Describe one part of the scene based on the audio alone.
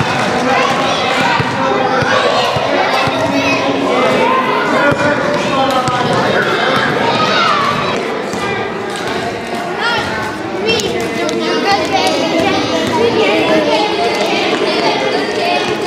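Hands slap together in quick high fives.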